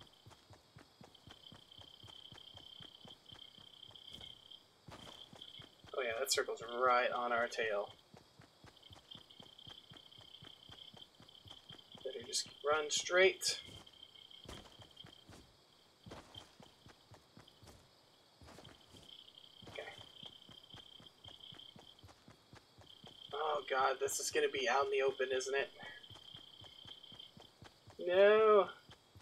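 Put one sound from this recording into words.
Footsteps patter quickly on grass and hard ground.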